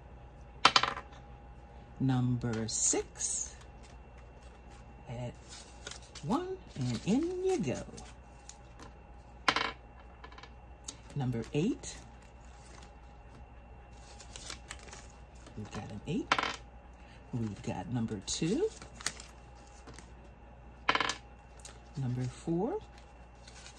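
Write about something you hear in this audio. Plastic binder pages flip with soft snaps.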